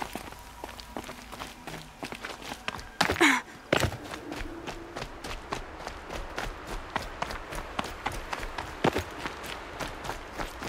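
Footsteps crunch quickly over rocky ground.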